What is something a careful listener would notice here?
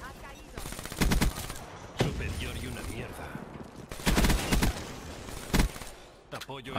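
Gunfire bursts loudly in quick volleys.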